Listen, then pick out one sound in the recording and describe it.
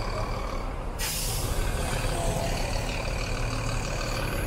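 A motorcycle engine hums as it rides past.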